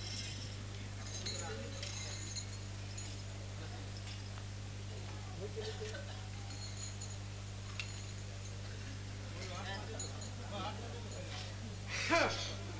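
Men speak and call out loudly through loudspeakers.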